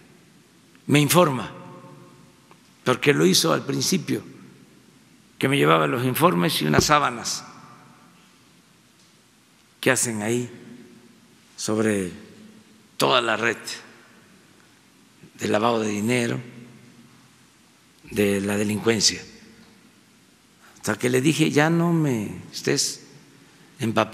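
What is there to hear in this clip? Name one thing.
An elderly man speaks with emphasis into a microphone in a large echoing hall, pausing between phrases.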